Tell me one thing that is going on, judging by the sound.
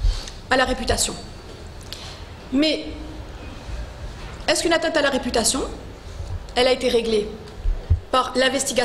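A woman speaks calmly into a microphone, in bursts with pauses.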